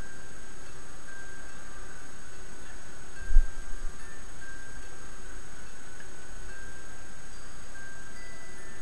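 Electronic game music plays softly with short, steady beeping notes.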